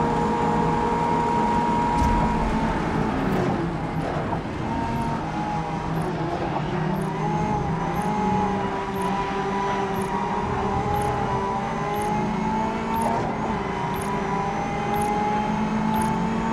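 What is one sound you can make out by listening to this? Rain patters steadily on a windscreen.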